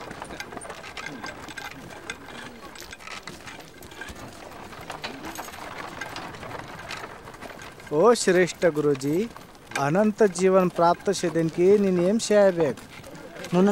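A cart's wooden wheels creak as it rolls.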